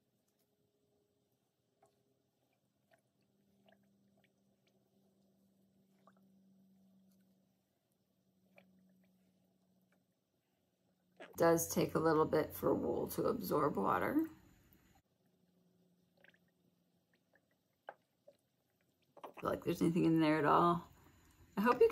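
A spoon stirs a thick, soft mixture in a metal pot.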